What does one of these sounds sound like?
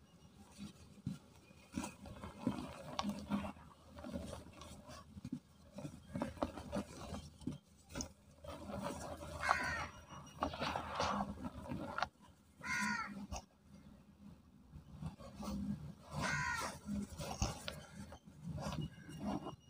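Hands crumble and squeeze dry powdery soil with soft crunching.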